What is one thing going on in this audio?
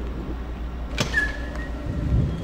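Heavy doors swing open with a clunk.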